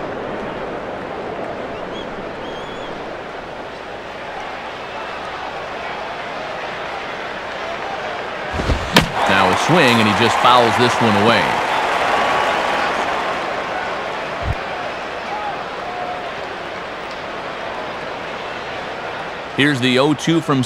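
A crowd murmurs steadily in a large ballpark.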